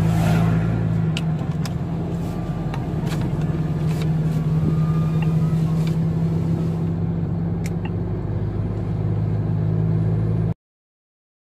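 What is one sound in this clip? An engine hums steadily as a vehicle drives along a road.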